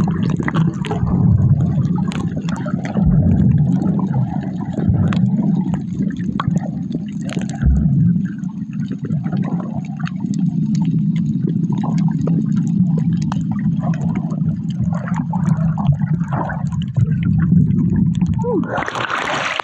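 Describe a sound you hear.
Water rumbles and bubbles, muffled underwater.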